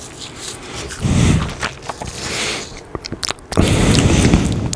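A young man breathes out heavily into a microphone.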